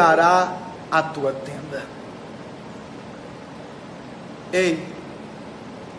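A young man speaks close to a phone microphone in short bursts.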